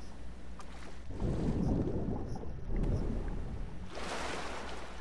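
Water sloshes and splashes around a swimmer.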